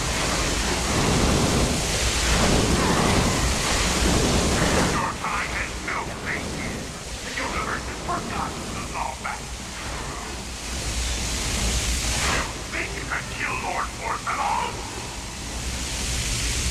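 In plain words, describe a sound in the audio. Electric blasts crackle and burst loudly.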